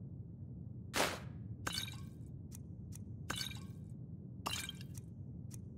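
Glass bottles clink softly as they are picked up.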